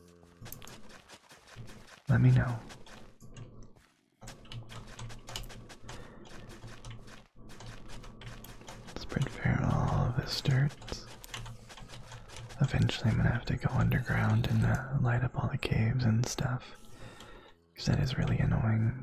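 Dirt crunches as blocks are tilled and dug.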